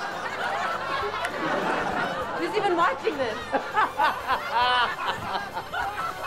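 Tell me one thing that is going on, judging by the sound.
A man laughs loudly and heartily nearby.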